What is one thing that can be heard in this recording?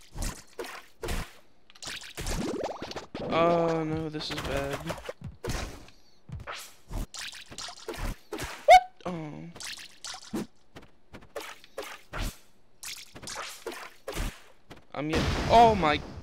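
Game hits and impacts thump and crack in quick bursts.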